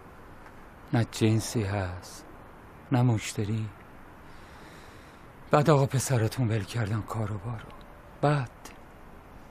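A middle-aged man speaks calmly and gravely, close by.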